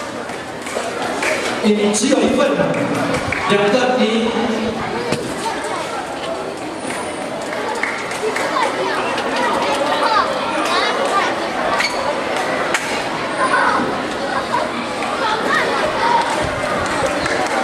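A crowd of children chatters in a large echoing hall.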